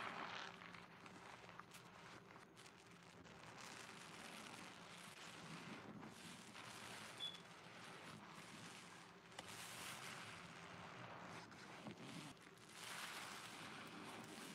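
A soapy sponge squelches and crackles as it is squeezed in water.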